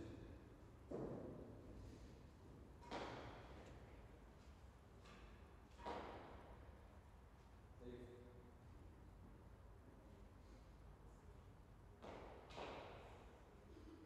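A ball smacks against hard walls and racquets, echoing in a large hall.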